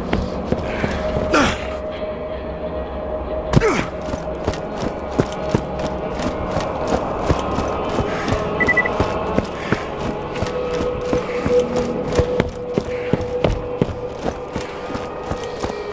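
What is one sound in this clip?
Footsteps crunch quickly on gravel and dirt.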